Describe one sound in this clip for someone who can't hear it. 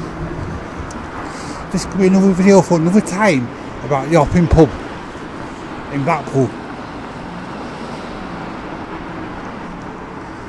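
Traffic hums faintly in a street outdoors.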